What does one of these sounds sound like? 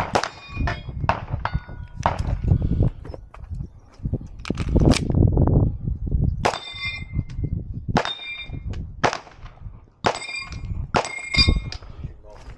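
A pistol fires sharp shots, one after another.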